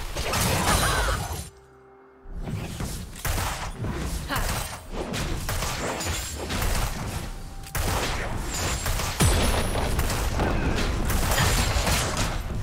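Magic blasts and weapon strikes crash in a busy video game battle.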